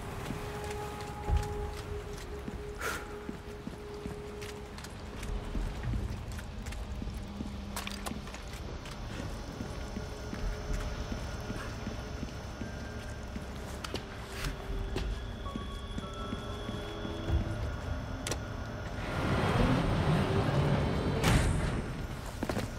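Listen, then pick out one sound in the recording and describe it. Footsteps crunch on rocky ground.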